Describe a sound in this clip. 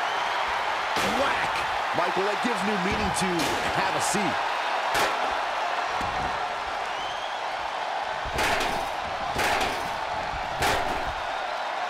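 Heavy thuds land on a wrestling ring's mat now and then.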